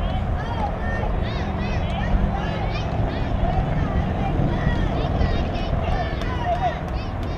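Young girls shout and cheer across an open field.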